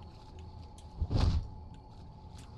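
A heavy blow lands with a thud.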